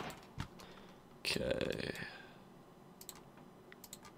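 Soft game interface clicks sound.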